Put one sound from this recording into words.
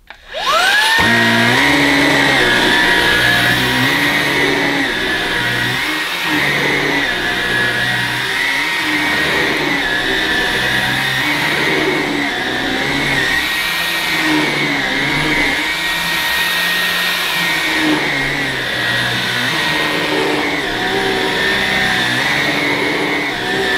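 A vacuum cleaner motor whirs up to a steady high whine.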